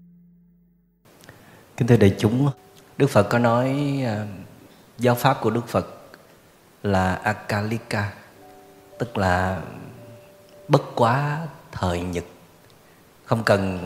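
A man speaks calmly and steadily.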